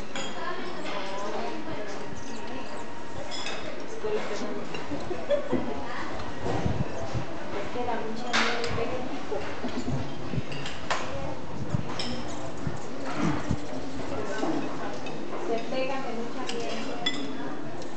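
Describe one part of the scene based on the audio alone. Hummingbirds chirp in short, high squeaks.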